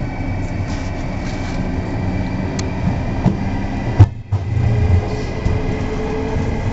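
A train engine rumbles steadily close by.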